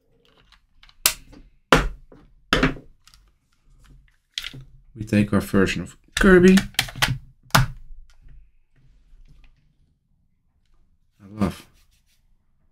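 Hard plastic clacks and taps as a handheld device is handled.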